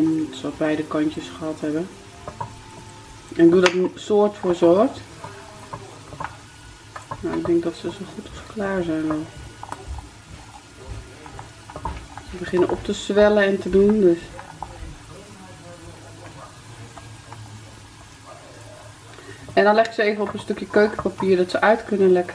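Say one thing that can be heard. Nuts sizzle softly in a hot frying pan.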